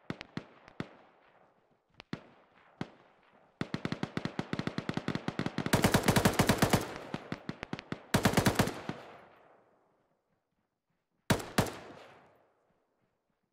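Rapid gunfire rattles in bursts and echoes away.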